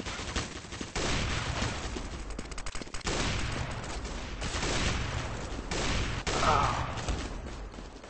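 A sniper rifle fires loud single shots, a few seconds apart.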